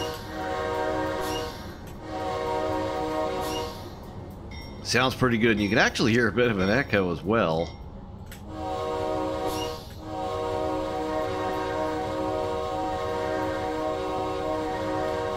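A locomotive horn blares in long, steady blasts.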